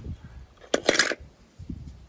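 Small metal toy cars clink against each other in a plastic bowl.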